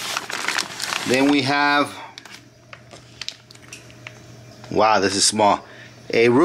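A plastic bag crinkles and rustles as hands handle it.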